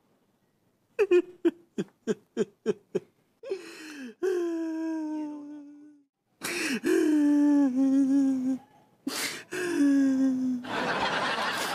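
A middle-aged man wails and sobs loudly.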